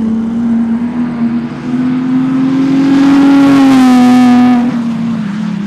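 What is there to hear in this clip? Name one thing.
A race car passes at high revs.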